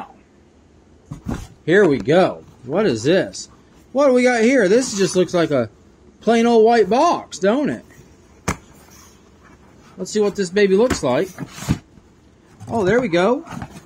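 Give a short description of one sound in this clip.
Cardboard rustles and scrapes as a box is opened by hand.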